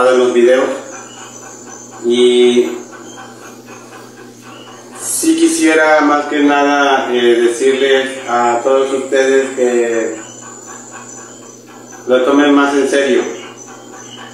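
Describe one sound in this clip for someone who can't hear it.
A young man speaks calmly nearby, in short bursts.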